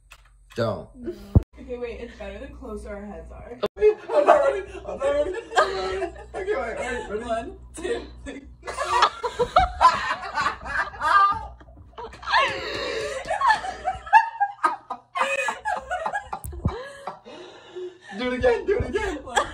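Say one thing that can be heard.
Young women talk and laugh loudly close by.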